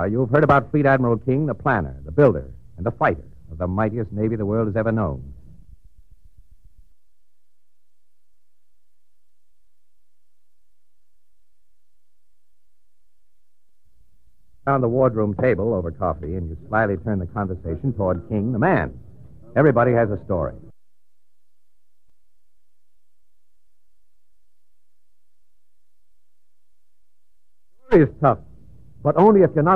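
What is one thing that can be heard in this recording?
A man speaks slowly and formally, with long pauses.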